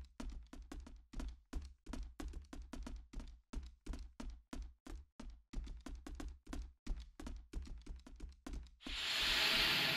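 Quick footsteps run across a wooden floor.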